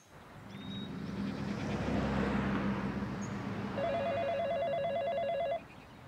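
A car drives past on a nearby road.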